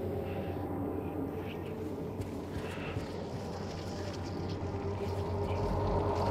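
Footsteps crunch slowly over debris.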